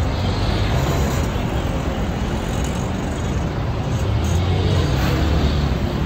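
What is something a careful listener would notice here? A motorcycle engine runs close by.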